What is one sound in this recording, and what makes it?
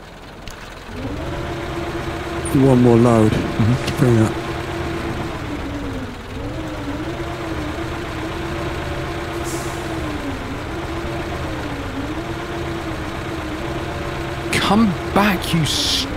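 A crane arm's hydraulics whine steadily as it swings and lifts.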